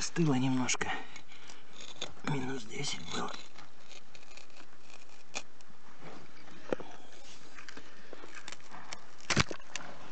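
A rock hammer scrapes and knocks against soil and stone.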